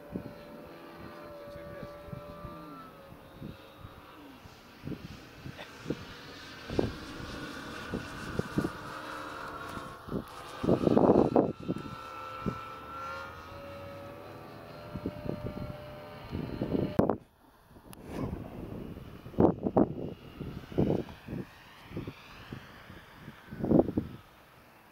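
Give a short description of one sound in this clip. A model plane's engine whines overhead, rising and falling in pitch as it flies by.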